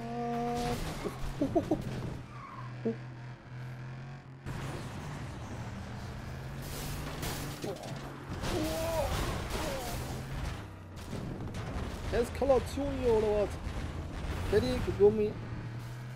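Cars crash and metal crunches.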